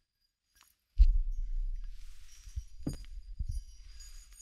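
A hand grips and rubs a microphone, making low thumps and rumbles.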